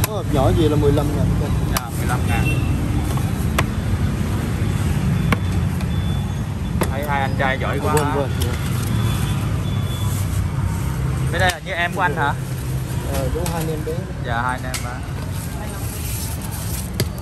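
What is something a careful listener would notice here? A metal spoon scrapes and taps against a foam food box.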